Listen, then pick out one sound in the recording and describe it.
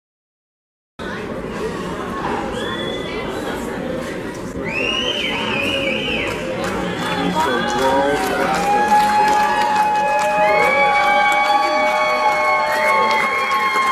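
A man chants bids rapidly over a loudspeaker in a large echoing hall.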